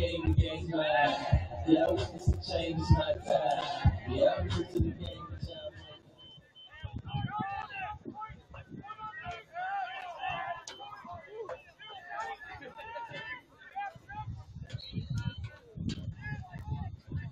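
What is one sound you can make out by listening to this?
A crowd of men and women shouts and cheers outdoors at a distance.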